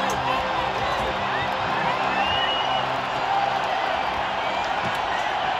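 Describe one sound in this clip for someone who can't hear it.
Music plays loudly through large loudspeakers.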